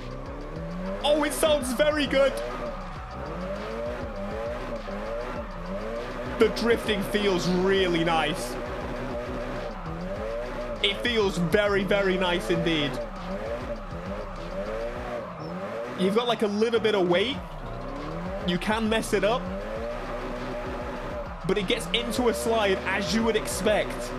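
Tyres squeal while a car skids sideways.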